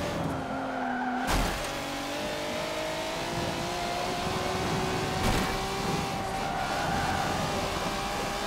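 A racing car engine roars at high revs, its pitch shifting as it changes gear.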